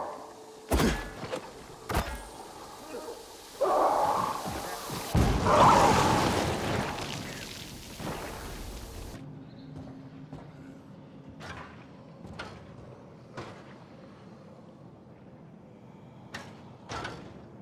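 A blade strikes with sharp thuds.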